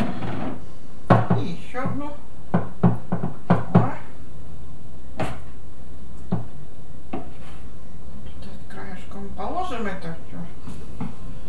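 A spoon clinks and scrapes against a plastic bowl.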